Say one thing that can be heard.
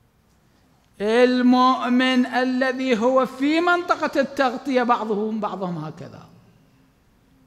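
A man speaks through a microphone in a drawn-out, chanting way.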